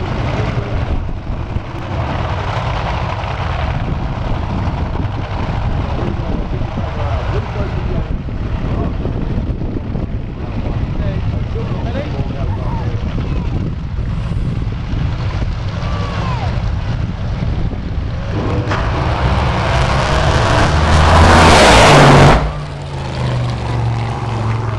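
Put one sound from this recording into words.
Wind rumbles across the microphone.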